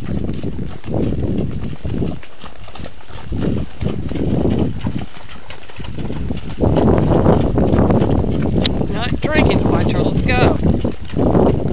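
Walking horses' hooves splash through shallow water.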